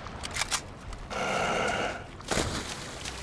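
A zombie snarls and groans up close.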